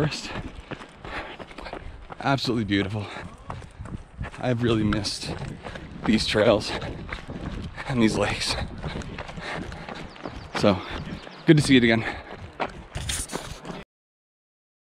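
A man talks with animation, close up.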